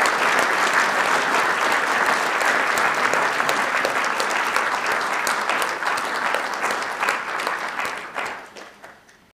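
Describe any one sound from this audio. An audience applauds in a room and the clapping fades away.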